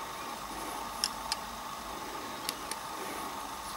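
A small metal tool clicks lightly against metal needles.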